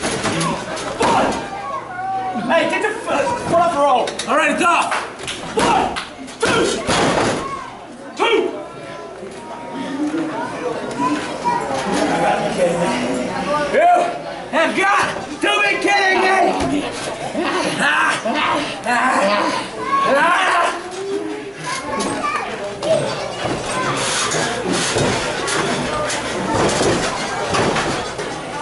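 Men shout and cheer loudly in an echoing hall.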